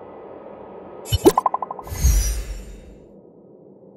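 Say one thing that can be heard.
A bright shimmering whoosh sounds as a figure teleports.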